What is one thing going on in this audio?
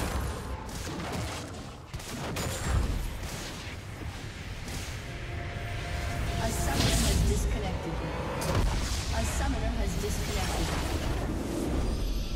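Magic spells whoosh and crackle in a busy video game battle.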